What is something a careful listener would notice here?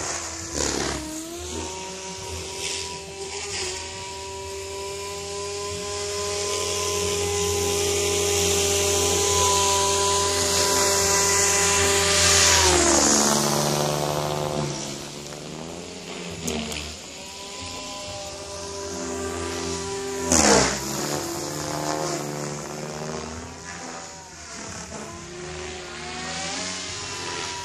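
A model helicopter's engine whines loudly, rising and falling in pitch as it flies past and away.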